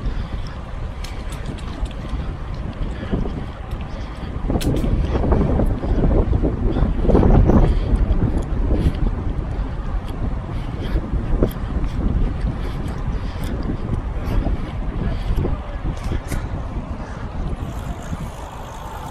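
Wind rushes loudly against a microphone outdoors.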